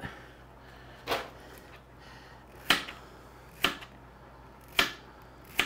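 A knife cuts through a cucumber and taps a cutting board.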